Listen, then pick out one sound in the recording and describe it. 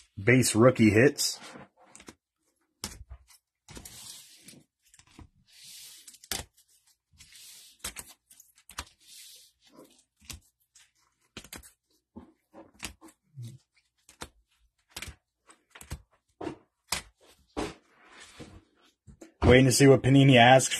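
Plastic card cases click and tap together as they are shuffled by hand.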